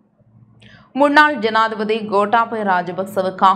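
A young woman reads out clearly through a microphone.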